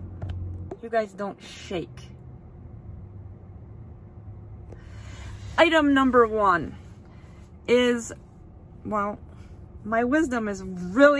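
A woman speaks with animation close to the microphone, in short bursts with pauses.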